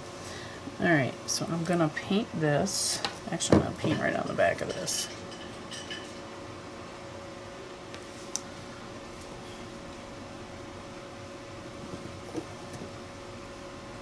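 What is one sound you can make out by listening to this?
Small glass bottles are picked up and set down on a table with light knocks.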